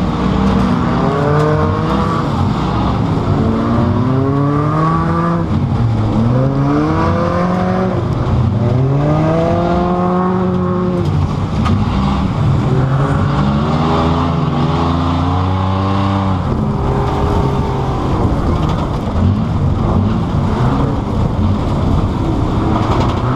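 A car engine roars loudly, revving up and down repeatedly throughout.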